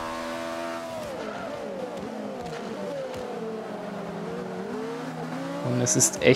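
A racing car engine drops and rises in pitch as gears change.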